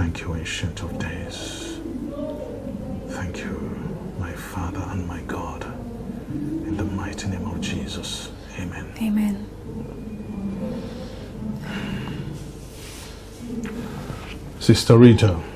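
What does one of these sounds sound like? A middle-aged man speaks in a low, serious voice close by.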